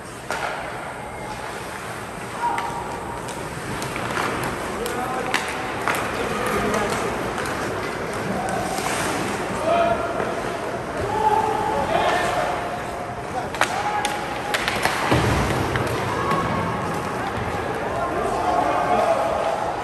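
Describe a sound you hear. Voices call out and shout across a large echoing rink.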